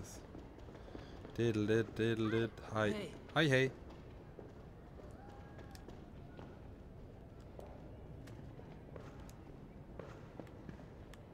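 Footsteps tap on stone stairs and floor.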